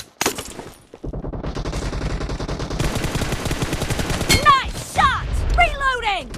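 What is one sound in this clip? Automatic rifle fire rattles rapidly and loudly.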